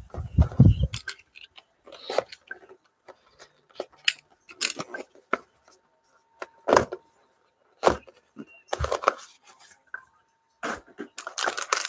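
Cardboard box flaps and lids rub and slide as a box is opened.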